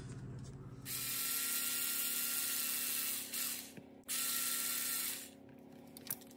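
A small electric screwdriver whirs in short bursts.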